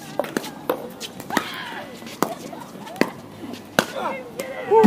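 Paddles pop sharply against a plastic ball.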